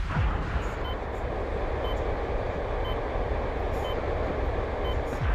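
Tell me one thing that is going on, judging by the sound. Jet thrusters roar with a steady rushing hiss.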